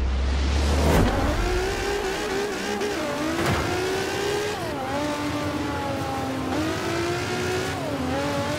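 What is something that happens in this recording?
A race car engine revs hard, climbing in pitch and dropping briefly with each gear change.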